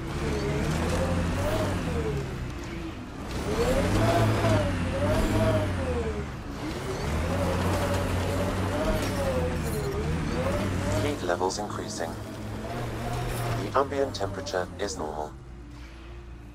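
A game vehicle's engine whines and revs, rising and falling in pitch.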